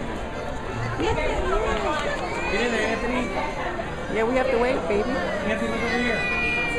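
A woman talks nearby with a cheerful, animated voice.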